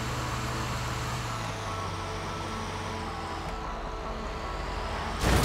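A heavy truck engine rumbles steadily as it drives along.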